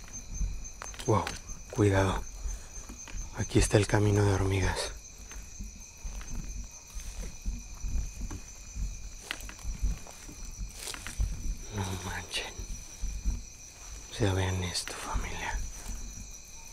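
A man speaks in short bursts close by.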